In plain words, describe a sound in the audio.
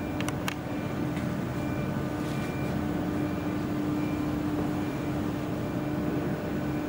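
A ship's engine hums steadily nearby.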